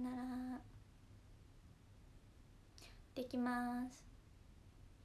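A young woman speaks in a bright, sing-song voice close by.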